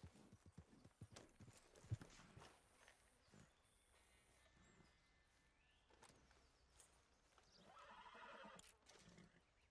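A knife squelches wetly through an animal carcass.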